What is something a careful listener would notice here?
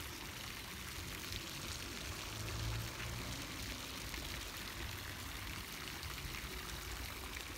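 A fountain splashes steadily into a pool outdoors.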